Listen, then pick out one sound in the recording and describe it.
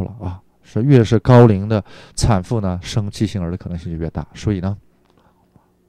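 An older man speaks calmly to an audience through a microphone.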